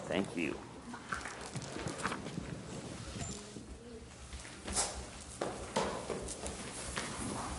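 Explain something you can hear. Children shuffle and move about.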